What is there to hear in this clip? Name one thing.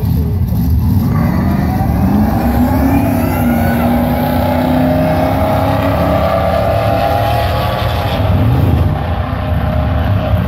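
A sports car accelerates hard down a drag strip.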